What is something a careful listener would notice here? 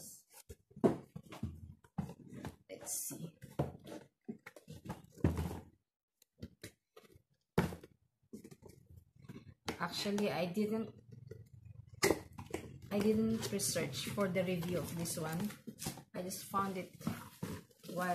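A cardboard box rustles and scrapes as it is handled.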